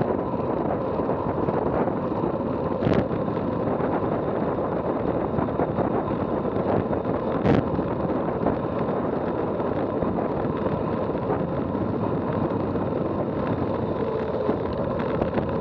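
Bicycle tyres hum on asphalt.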